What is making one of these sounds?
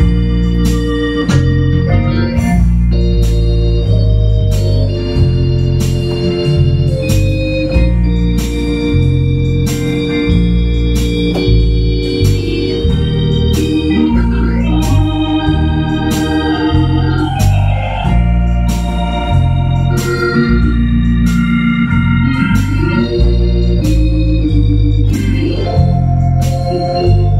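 An electronic keyboard plays a steady drum beat.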